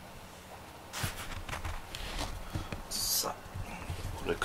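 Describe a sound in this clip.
A cat shifts on a cushion with soft rustling and clinking.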